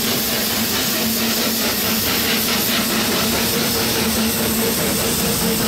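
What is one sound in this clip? A steam engine gives off a steady low hum.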